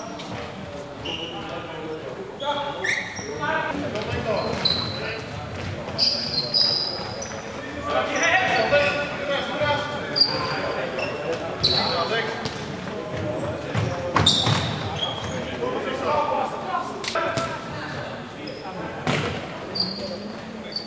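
Young men shout and call out across an echoing hall.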